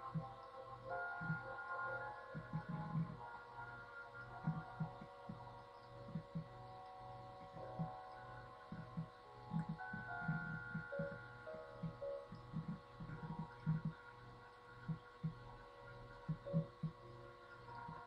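Rain falls.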